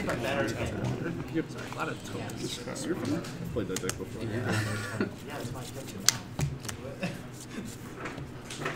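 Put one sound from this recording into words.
Playing cards tap and slide on a table.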